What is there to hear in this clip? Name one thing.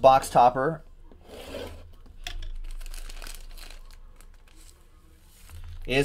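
A plastic wrapper crinkles as hands open a pack.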